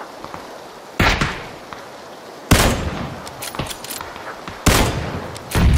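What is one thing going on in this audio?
A sniper rifle fires loud single shots that echo.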